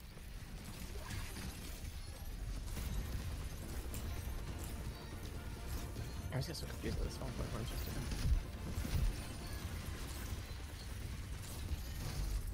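Game explosions and magic effects boom and whoosh.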